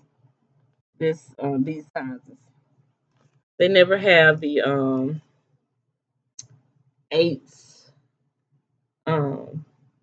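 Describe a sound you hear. A middle-aged woman talks close by in short, animated phrases.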